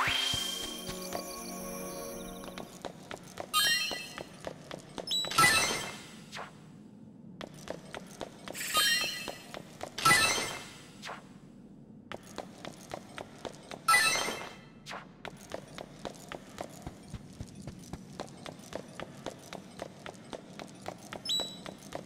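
Small footsteps patter quickly and steadily.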